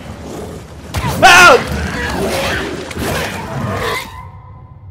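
A monster shrieks and snarls in a close attack.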